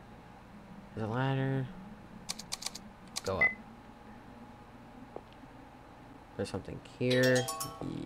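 A short electronic chime plays.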